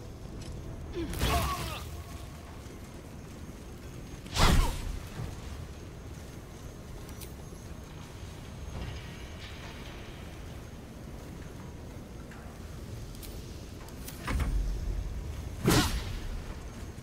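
Magic blasts and blows crash loudly in a fight.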